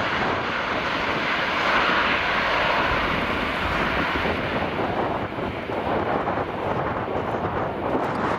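A large propeller plane's engines roar loudly.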